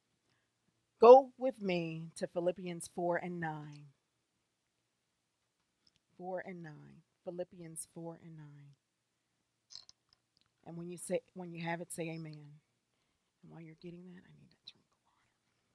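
A woman speaks calmly into a microphone, with pauses.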